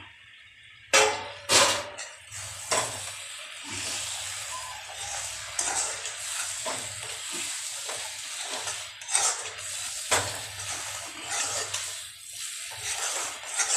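A hand stirs and scrapes food around a metal pan.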